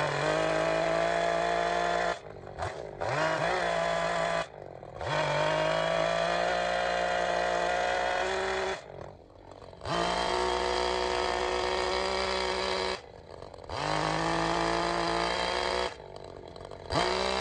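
A chainsaw cuts into wood.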